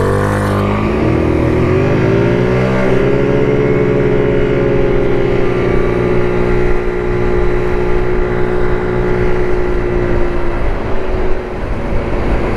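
A scooter engine revs up and hums steadily while riding.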